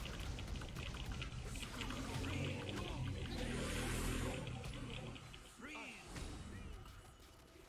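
Spell effects crackle and burst as a game character fights.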